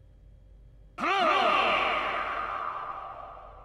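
A bright magical shimmer rings out with a warbling tone and fades.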